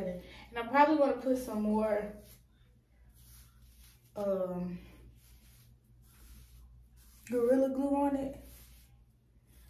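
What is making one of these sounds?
A brush scrapes through hair.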